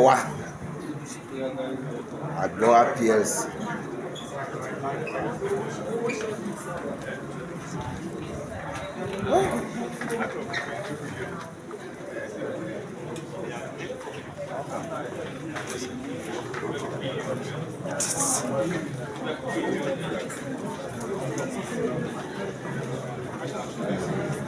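A crowd of men and women chatter nearby in an echoing hall.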